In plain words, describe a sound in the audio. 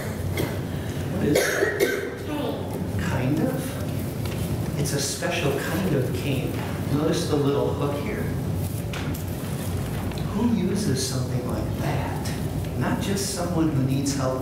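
An older man speaks calmly in an echoing room.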